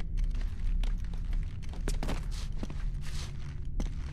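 A man drops from a ledge and lands with a thud on stone.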